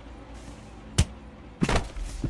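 A heavy blow lands with a loud thud.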